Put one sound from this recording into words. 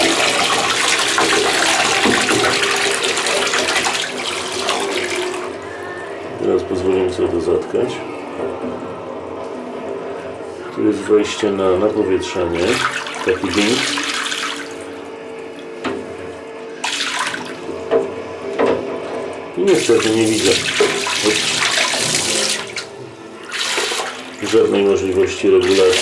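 An aquarium powerhead hums underwater.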